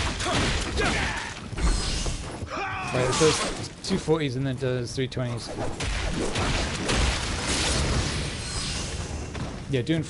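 Swords slash and strike in a fight.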